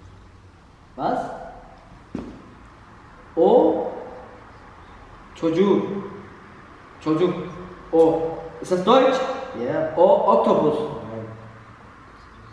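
A young man speaks loudly and forcefully up close.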